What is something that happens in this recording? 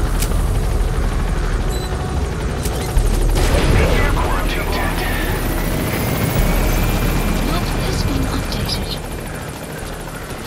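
A helicopter engine rumbles and its rotor thumps loudly.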